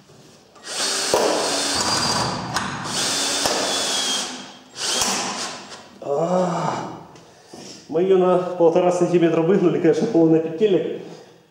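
A power tool whirs and hisses loudly in bursts.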